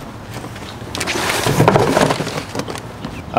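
A cardboard box rustles and scrapes.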